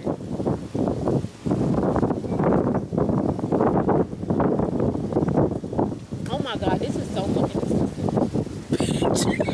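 Strong wind gusts and buffets against the microphone outdoors.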